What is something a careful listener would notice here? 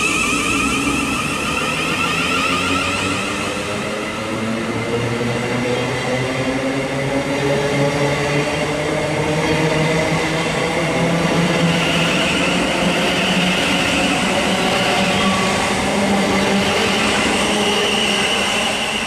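An electric train rolls past close by with a steady rumble and whine.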